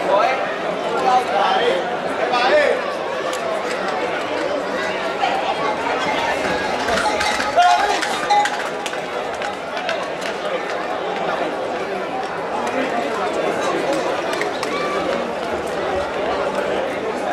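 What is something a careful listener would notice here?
A crowd of spectators chatters and shouts all around outdoors.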